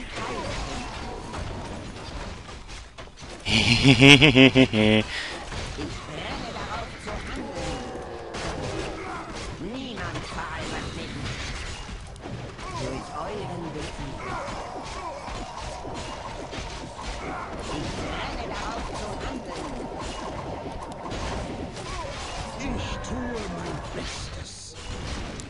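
Weapons clash and clang in a busy fight.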